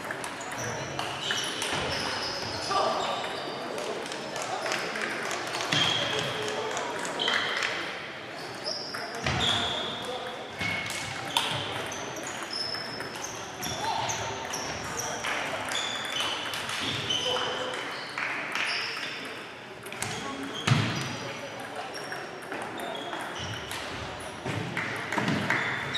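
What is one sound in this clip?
Shoes squeak sharply on the hall floor.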